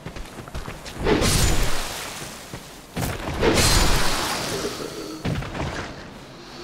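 A sword swings and strikes with heavy slashes.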